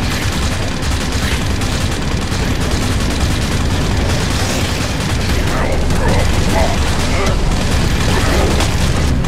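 A heavy gun fires rapidly and continuously.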